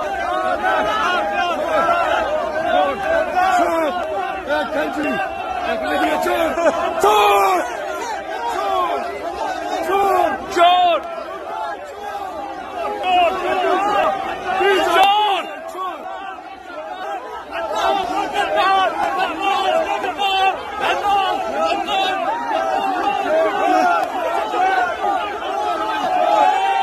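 A large crowd of men chants loudly together in a big echoing space.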